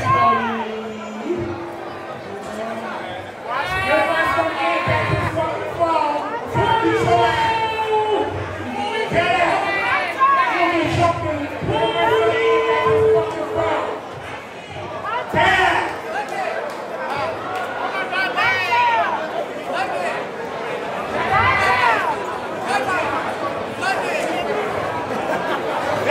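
A man talks loudly and with animation over a microphone in a large echoing hall.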